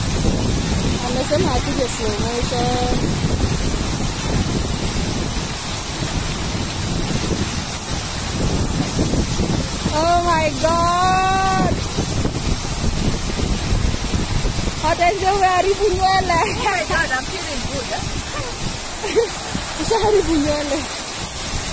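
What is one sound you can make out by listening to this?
Water jets spray and splash steadily outdoors.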